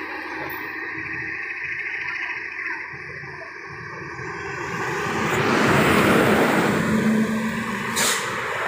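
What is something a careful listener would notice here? A heavy truck drives past close by with a loud engine roar.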